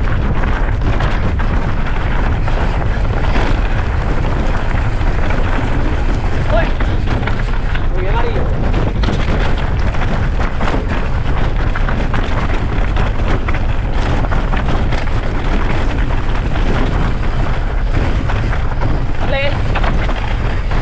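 A bicycle's frame and chain clatter over bumps.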